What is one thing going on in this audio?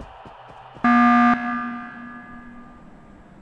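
A loud game alarm blares once.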